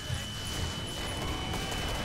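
A gun fires.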